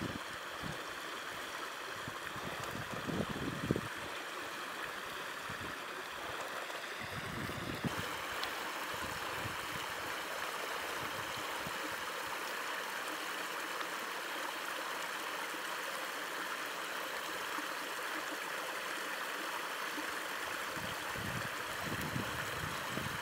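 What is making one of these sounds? A stream babbles and rushes over stones.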